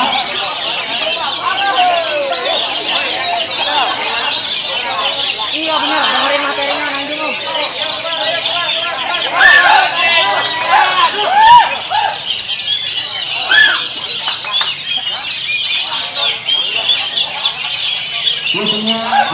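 A caged songbird sings loud, varied warbling phrases.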